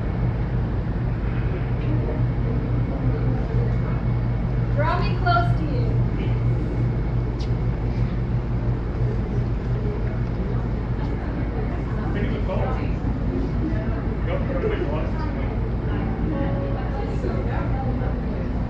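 Several adults talk and murmur nearby in a large echoing hall.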